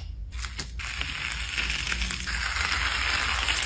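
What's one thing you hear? Slime squishes and crackles under pressing fingers.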